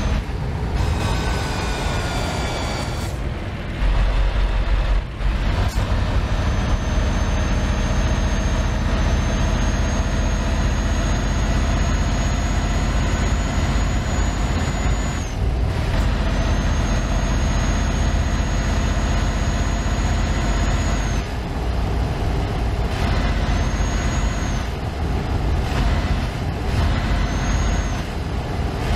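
Tyres roll on asphalt with a steady road noise.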